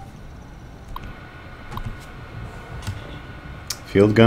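A computer terminal hums steadily.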